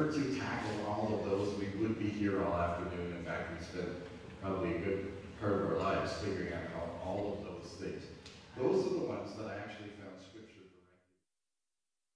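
A man speaks with animation through a headset microphone in a room with a slight echo.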